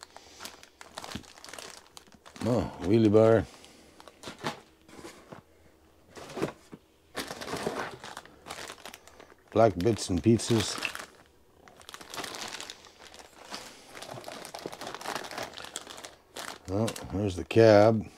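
Plastic bags rustle and crinkle close by.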